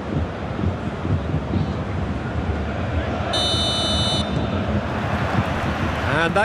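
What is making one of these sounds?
A large stadium crowd roars and chants steadily throughout.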